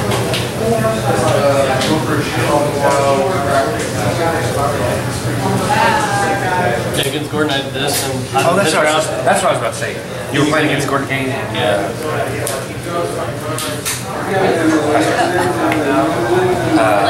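Playing cards slap softly and slide on a cloth mat.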